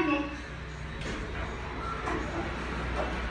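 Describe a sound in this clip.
Elevator doors slide open with a rattle.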